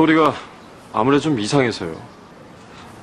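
A young man speaks in a puzzled tone, close by.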